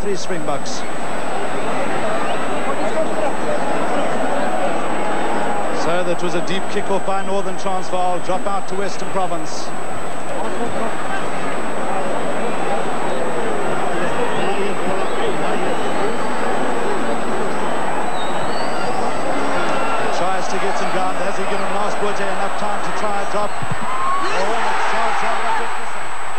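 A large stadium crowd roars and cheers throughout.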